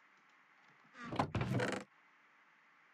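A wooden chest creaks open with a thud.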